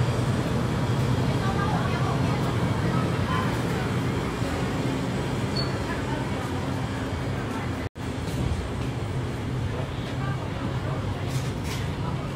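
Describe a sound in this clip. Refrigerated display cases hum steadily.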